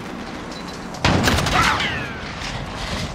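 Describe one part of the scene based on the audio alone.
An explosion bursts and debris rattles.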